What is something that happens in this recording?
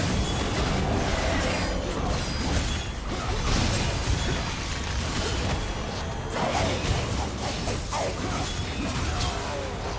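Video game spells whoosh and crackle as characters fight.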